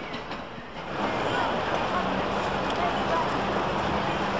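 Street noise of a busy crowd murmurs outdoors.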